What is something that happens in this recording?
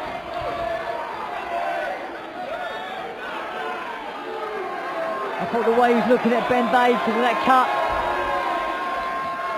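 A crowd cheers and shouts in a large echoing arena.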